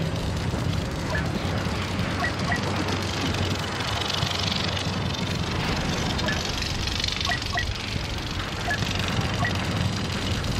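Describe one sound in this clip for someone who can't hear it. Short electronic beeps sound as menu options are selected.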